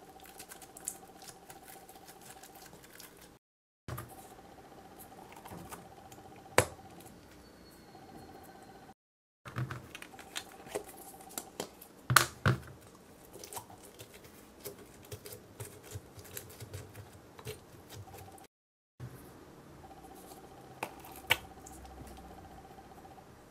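Plastic clicks and taps as a syringe is handled.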